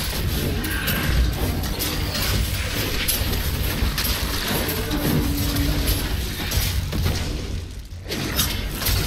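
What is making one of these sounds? Fiery spells explode and crackle in rapid bursts.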